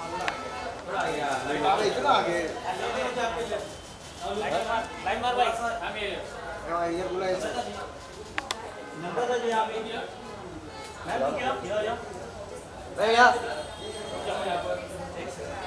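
Men and women talk and call out nearby in a lively crowd.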